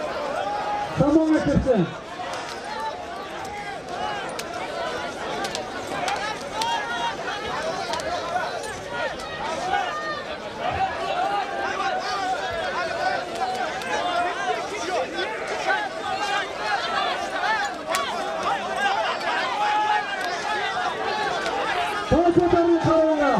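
A man nearby shouts loudly.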